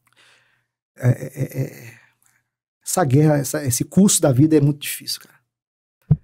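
A middle-aged man speaks with animation close to a microphone.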